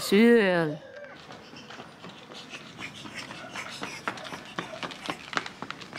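A small child's footsteps patter on pavement outdoors.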